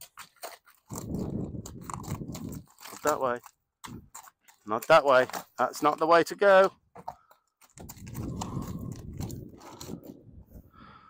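Hooves thud and clatter on a hollow wooden ramp.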